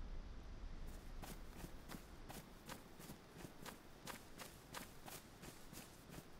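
Footsteps crunch through grass at a steady walking pace.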